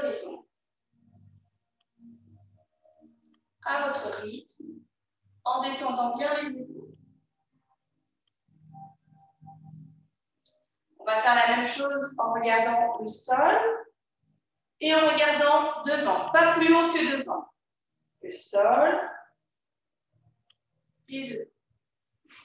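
A young woman speaks calmly nearby, with pauses.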